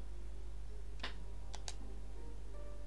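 A game menu closes with a short click.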